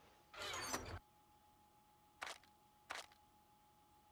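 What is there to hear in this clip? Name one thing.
A wooden cabinet door opens with a short thud.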